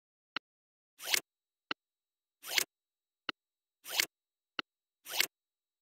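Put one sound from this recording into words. A computer program plays quick rising whooshes after each click.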